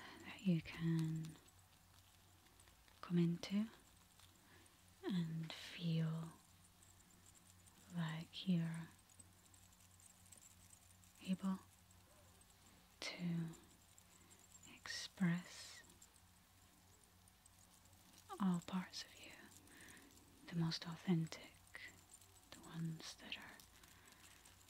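A young woman speaks softly and slowly into a microphone close by, with pauses.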